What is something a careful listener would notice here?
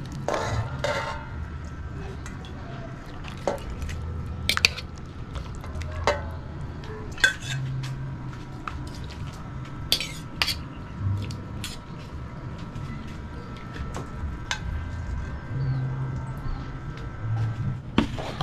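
Metal tongs clink against a metal pan and bowl.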